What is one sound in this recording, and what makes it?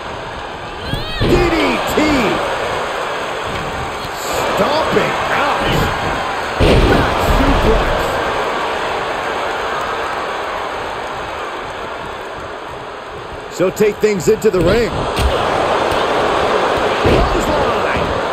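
Bodies thud hard onto a wrestling mat.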